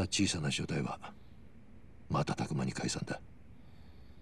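A man speaks in a low, serious voice, close by.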